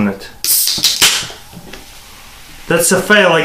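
Soda foam fizzes as it overflows.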